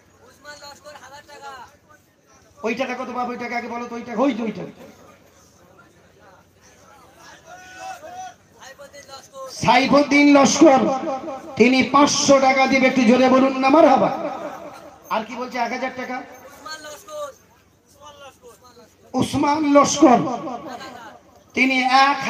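A man preaches passionately into a microphone over a loudspeaker, his voice rising to chanting and shouting in an echoing space.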